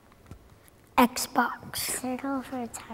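A young girl speaks cheerfully and close to a microphone.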